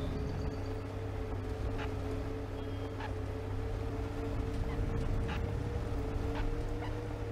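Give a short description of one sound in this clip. A bus engine hums steadily while driving.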